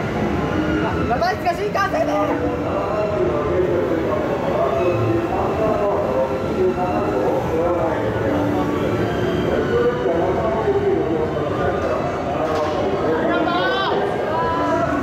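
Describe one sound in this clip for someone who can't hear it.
Train brakes squeal as the train slows.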